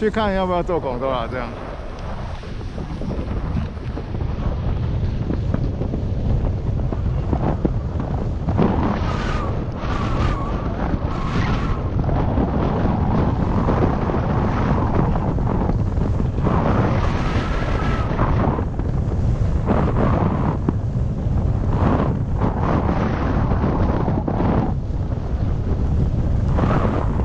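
Skis scrape and hiss over snow, growing louder with speed.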